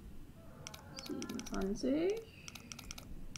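A young woman speaks briefly and expressively, close to a microphone.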